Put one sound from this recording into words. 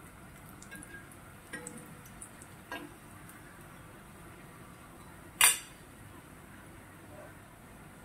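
Oil sizzles softly in a hot pan.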